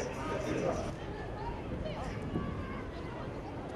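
A man speaks outdoors.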